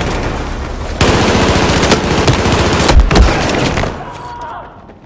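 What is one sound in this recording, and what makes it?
A rifle fires rapid bursts of loud shots.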